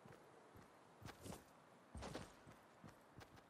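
A pickaxe thuds against a tree trunk.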